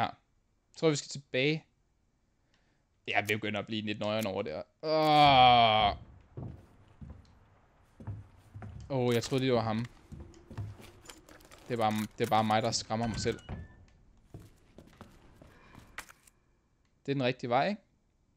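A young man talks with animation into a close microphone, with pauses.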